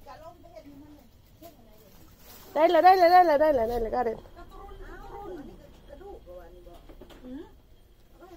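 A baby coos softly up close.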